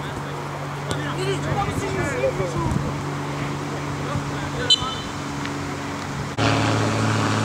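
Young men shout to each other in the distance outdoors.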